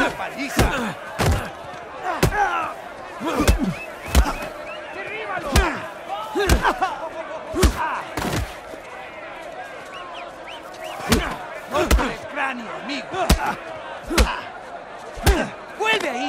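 Punches land with heavy thuds, again and again.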